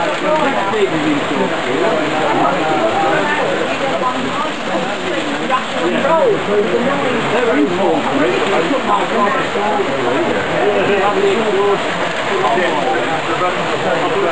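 Several men chat in the background of an indoor crowd.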